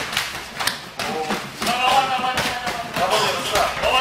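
A crowd of young men shouts and cheers close by.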